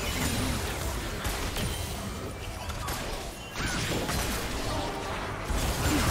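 Video game spell effects and hits crackle and clash in a fight.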